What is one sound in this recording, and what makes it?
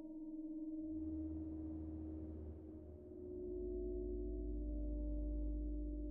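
A deep bass tone swells in and drones.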